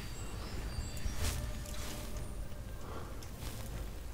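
A magic spell crackles and hums.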